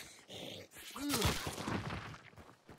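A heavy blow lands with a wet thud.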